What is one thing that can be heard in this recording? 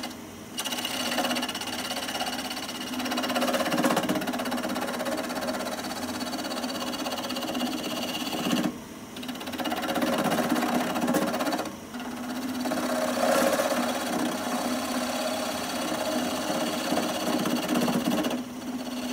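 A wood lathe spins with a steady hum.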